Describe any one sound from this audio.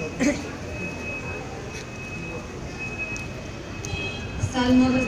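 People murmur and chat in the background outdoors.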